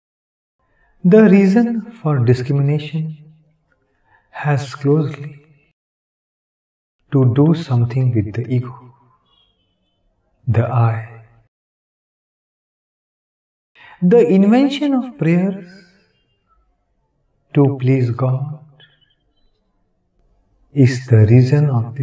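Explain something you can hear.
An elderly man speaks calmly and slowly into a close microphone, with pauses between phrases.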